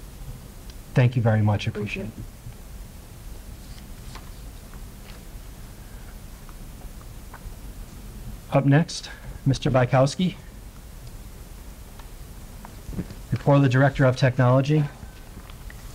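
A man speaks briefly through a microphone in a room.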